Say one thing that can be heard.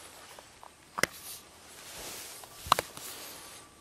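A scope cover snaps open with a sharp click.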